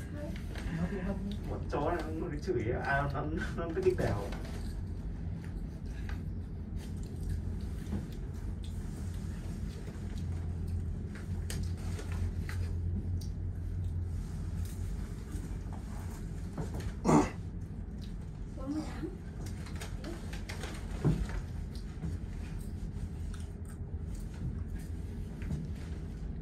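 A cable car cabin hums and rumbles low and steadily as it glides along its cables.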